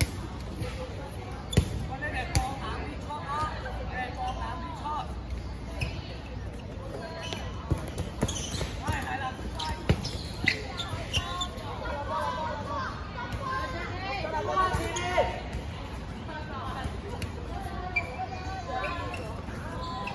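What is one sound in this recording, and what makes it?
Young women call out and chatter during play.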